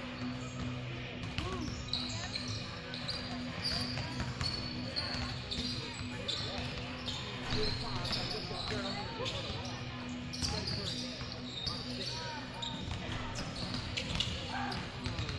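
Basketballs bounce on a hard floor in a large echoing gym.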